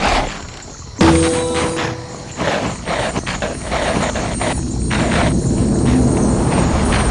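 A bright magical chime sparkles.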